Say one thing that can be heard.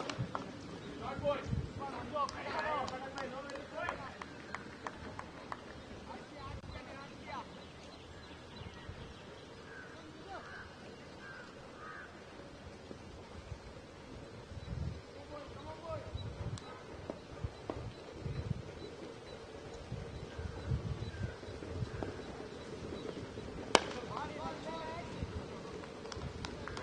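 Players call out loudly across an open field.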